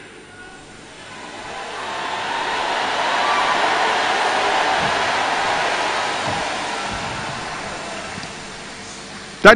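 A large crowd murmurs and prays aloud together.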